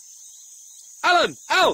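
A marmot gives loud, shrill calls.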